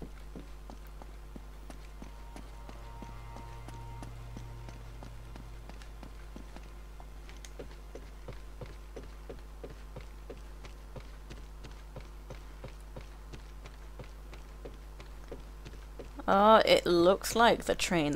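Footsteps thud quickly on wooden floors and stairs.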